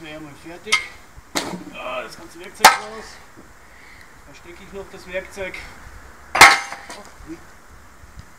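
A shovel scrapes and clanks in soil and stones.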